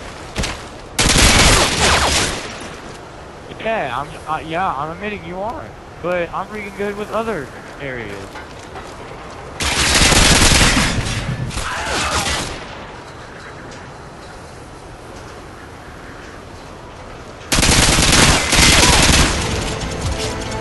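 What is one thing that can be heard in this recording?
Rapid gunfire crackles loudly in bursts.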